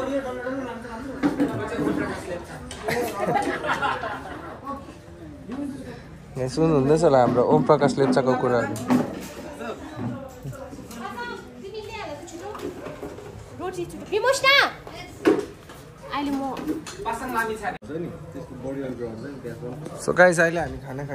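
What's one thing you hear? Several people chat in the background outdoors.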